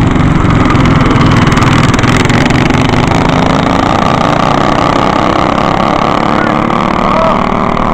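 Small go-kart engines buzz loudly close by and fade as they drive away.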